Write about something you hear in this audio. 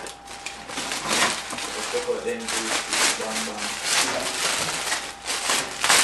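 Plastic wrapping crinkles and rustles loudly close by.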